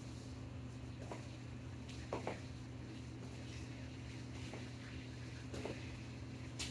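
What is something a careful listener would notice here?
Sneakers thud softly on a rubber floor.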